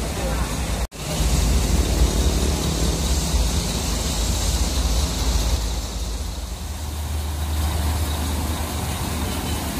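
A large bus engine rumbles close by.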